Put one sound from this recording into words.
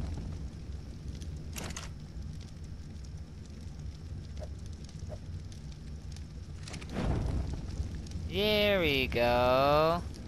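A campfire crackles.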